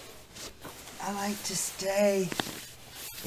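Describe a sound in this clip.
An older woman speaks calmly, close by.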